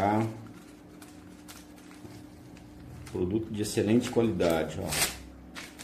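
A paper label peels off its backing.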